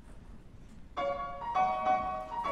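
A piano starts playing a melody.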